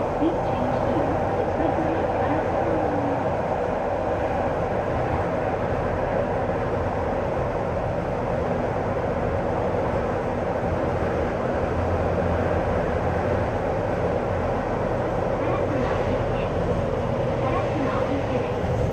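Steel wheels squeal and screech on the rails.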